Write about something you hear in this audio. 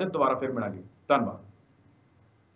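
A young man speaks calmly and close to a microphone.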